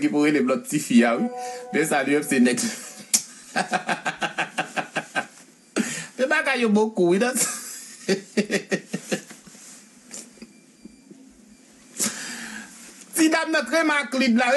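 A young man talks animatedly and close to a microphone.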